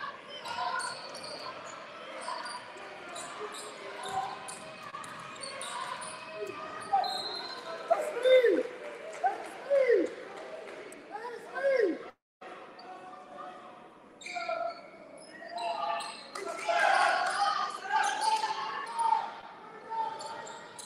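Spectators and players talk and call out across a large echoing gym.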